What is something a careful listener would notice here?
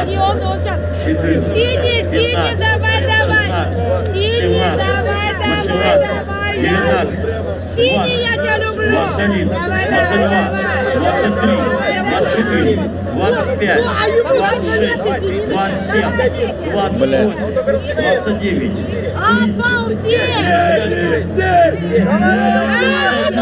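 A man speaks loudly and with animation through a microphone and loudspeaker.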